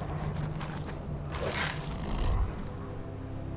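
A beast strikes with heavy blows in a fight.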